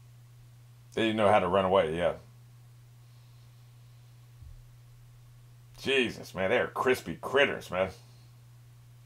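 A middle-aged man talks calmly into a microphone in short bursts.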